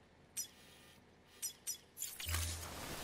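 Soft interface clicks sound a few times.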